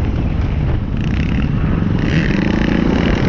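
Dirt bike engines whine nearby.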